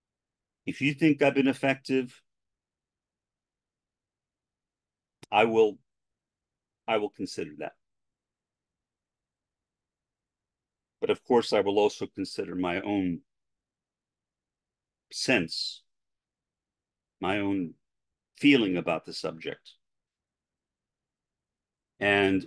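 An elderly man speaks calmly into a close microphone, pausing often.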